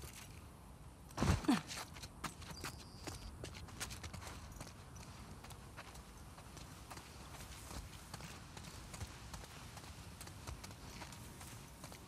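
Footsteps run and walk over grass and pavement.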